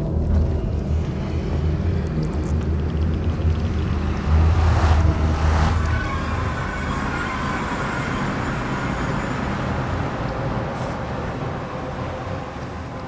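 A deep, swirling whoosh rises and slowly fades.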